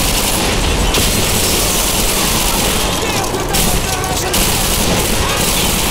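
Flames crackle and roar on a burning vehicle.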